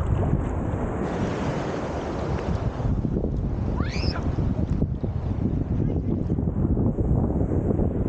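Legs kick and splash in the water.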